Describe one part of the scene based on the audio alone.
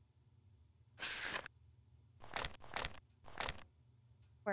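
Book pages turn with a soft rustle.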